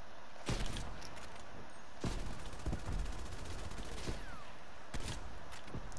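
A sniper rifle fires loud sharp shots.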